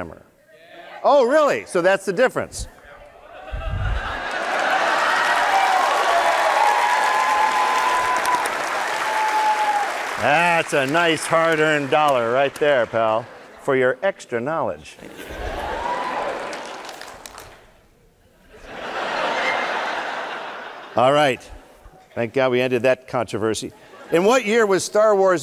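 A man speaks animatedly through a microphone in a large hall.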